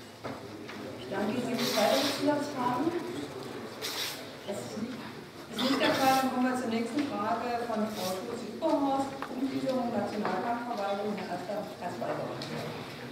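A woman speaks steadily into a microphone, reading out.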